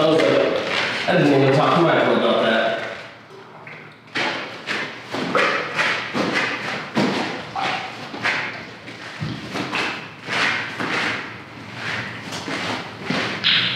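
Thick liquid pours and splashes onto the floor.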